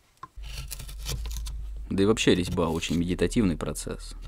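A chisel taps into wood.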